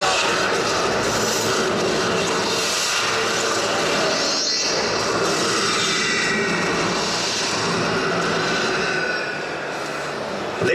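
A large crowd of men and women chatters and shouts loudly in a large echoing hall.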